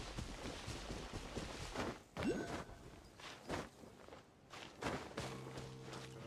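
Light footsteps patter on grass.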